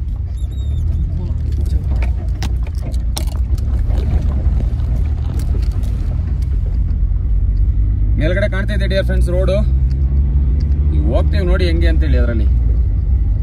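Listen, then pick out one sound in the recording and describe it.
A vehicle engine rumbles low and steady from inside the cab.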